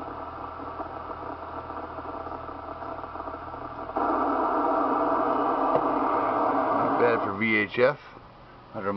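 A radio receiver hisses with steady static, which suddenly grows louder partway through.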